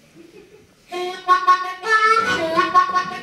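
A harmonica plays loud wailing notes close to a microphone.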